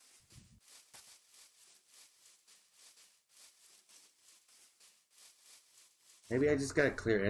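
Footsteps crunch steadily over grass.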